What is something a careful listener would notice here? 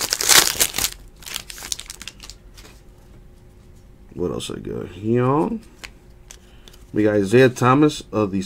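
Trading cards slide and shuffle against each other.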